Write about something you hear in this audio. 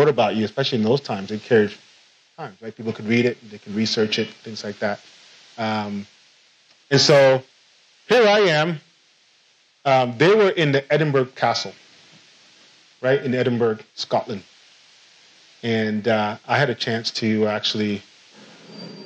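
A man speaks with animation through a microphone in a room.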